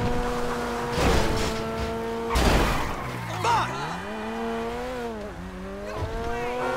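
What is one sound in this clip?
A sports car engine hums and revs up and down.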